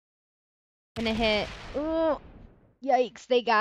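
A woman speaks with animation through a headset microphone.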